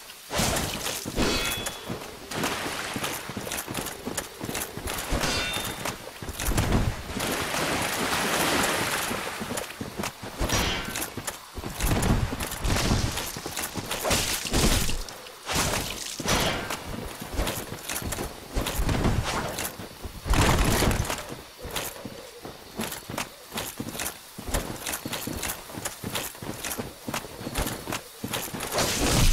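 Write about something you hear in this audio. Armoured footsteps clank and crunch over soft ground.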